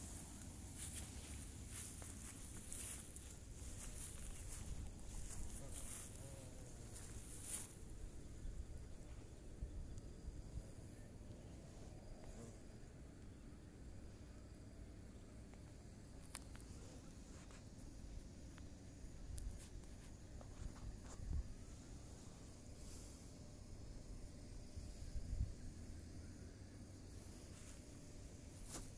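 Wind rumbles steadily across an open hilltop.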